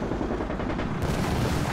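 A rifle fires sharp shots close by.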